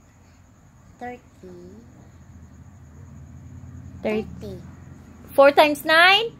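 A young girl speaks close by in short, animated bursts.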